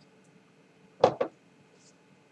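A glass is set down on a table with a couple of knocks.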